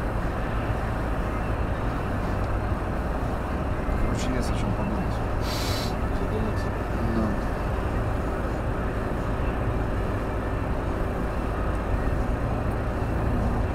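Tyres roll steadily over the road.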